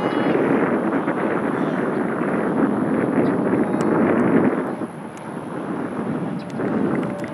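Wind blows across an open outdoor field in gusts.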